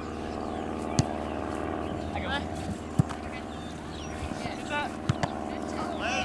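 A soccer ball thumps off a player's foot.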